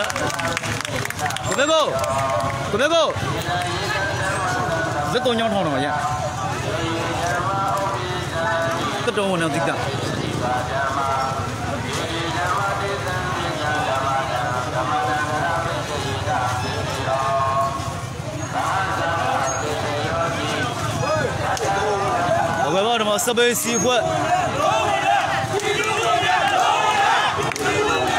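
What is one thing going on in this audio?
A large crowd outdoors chants and cheers loudly.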